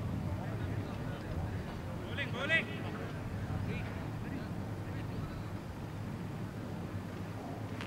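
Men call out faintly across an open field.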